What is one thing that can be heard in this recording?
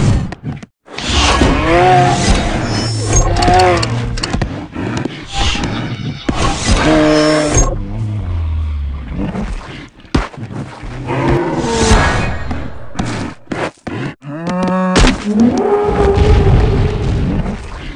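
A large creature roars loudly, again and again.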